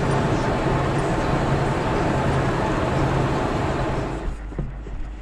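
A car drives along a road with a steady rumble of tyres.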